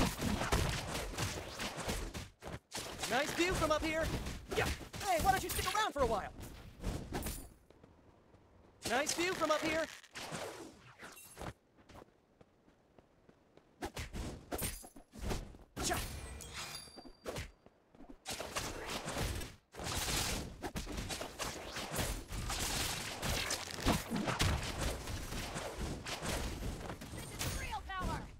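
Sound effects of a mobile battle game clash and blast during a fight.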